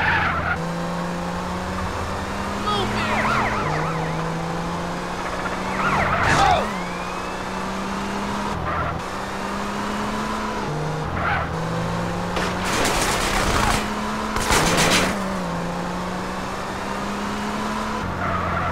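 A car engine hums steadily and shifts gears as it accelerates.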